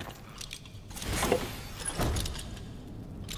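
A heavy chest lid creaks open with a thud.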